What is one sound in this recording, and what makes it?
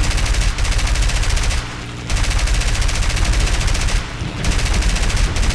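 Aircraft machine guns fire in rapid, loud bursts.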